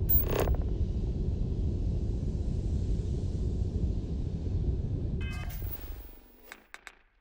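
A spacecraft engine rumbles low and steady, then fades away.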